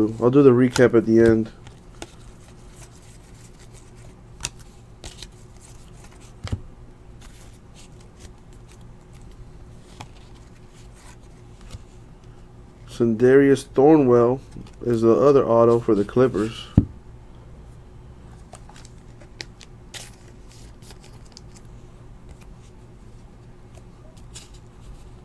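Trading cards rustle and flick as they are shuffled by hand.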